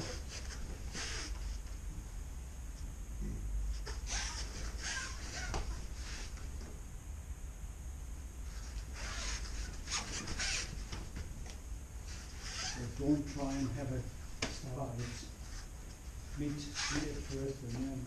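Bodies thud onto a mat as people fall.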